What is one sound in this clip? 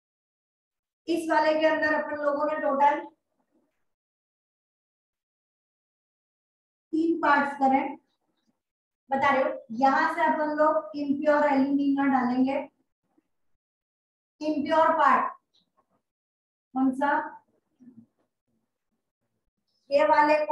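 A woman explains calmly in short bursts, close by.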